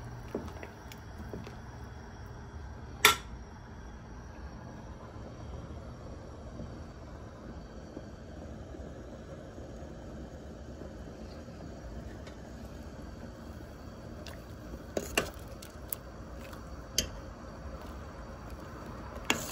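Water simmers and bubbles in a pot.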